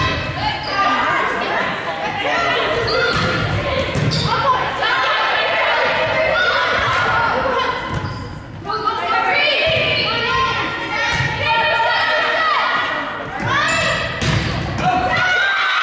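A volleyball smacks off hands and arms.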